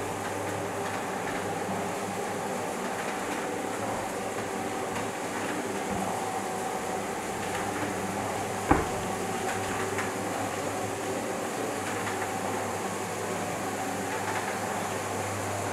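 Motorised window blinds hum steadily as they close.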